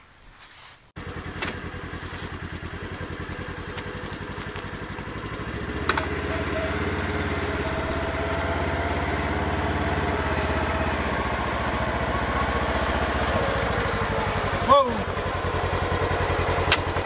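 A utility vehicle's engine idles with a steady low rumble.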